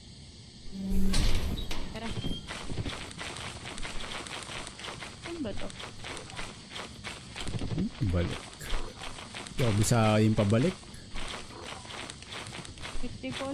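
Footsteps crunch steadily over forest ground.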